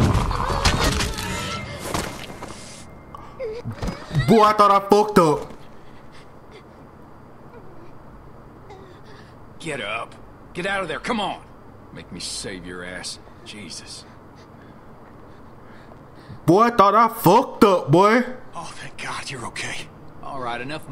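A young man shouts and talks excitedly into a microphone.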